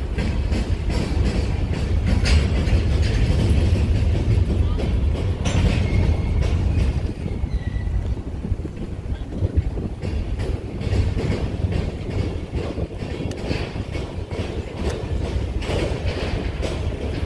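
A long freight train rumbles past, with wheels clicking and clanking over rail joints.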